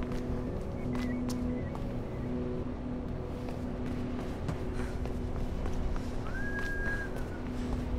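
Quick footsteps run across a hard roof.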